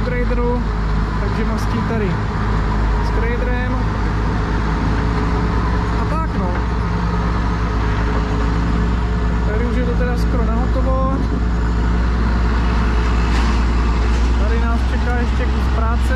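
A heavy diesel engine rumbles steadily close by.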